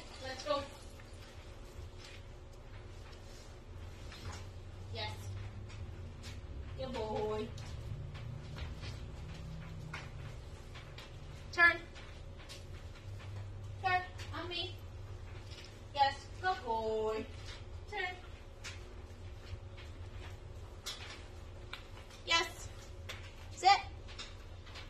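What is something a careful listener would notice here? A woman gives short commands to a dog in a bright, calm voice.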